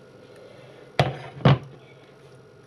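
A ceramic bowl knocks down onto a hard counter.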